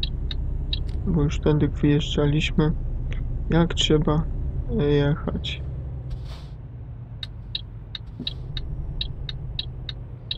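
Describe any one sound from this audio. A diesel truck engine drones.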